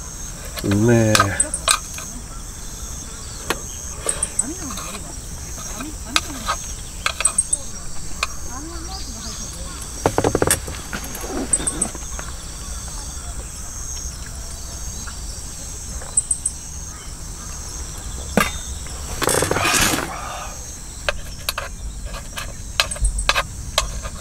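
Chopsticks tap and scrape against a hot griddle.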